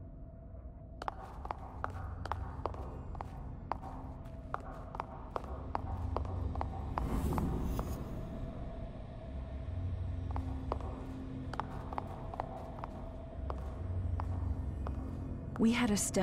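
Footsteps tap on a hard floor at a quick pace.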